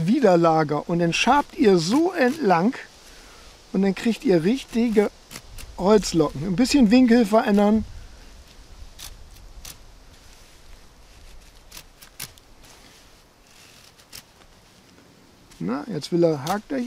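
A knife shaves thin curls off a stick of wood with short scraping strokes.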